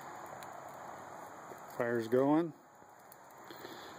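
A small fire crackles and hisses softly.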